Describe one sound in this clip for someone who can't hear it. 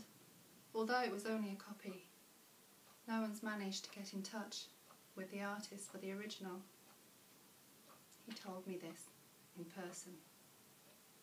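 A young woman reads aloud calmly, close by.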